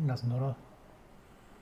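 A man speaks briefly and close into a headset microphone.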